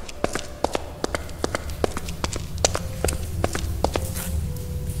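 Footsteps clatter quickly on stone.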